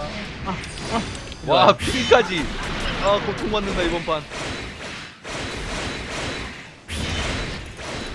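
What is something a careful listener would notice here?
Laser beams zap and blast in a video game.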